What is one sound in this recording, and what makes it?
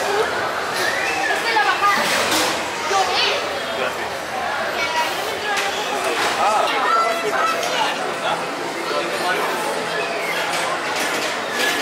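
A crowd of men and women chatters nearby in a large echoing hall.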